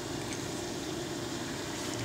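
A fishing reel clicks as its handle turns.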